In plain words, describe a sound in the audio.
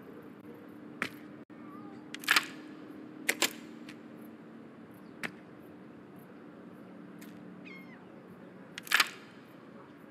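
Short sharp clicks sound now and then, as game menu buttons are pressed.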